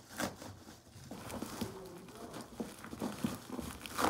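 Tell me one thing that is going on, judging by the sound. Bubble wrap crinkles and rustles in a person's hands.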